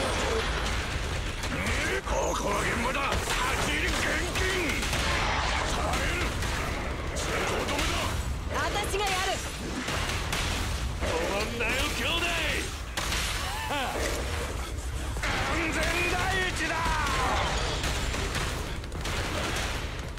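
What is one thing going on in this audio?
Energy blasts crackle and explode in rapid bursts.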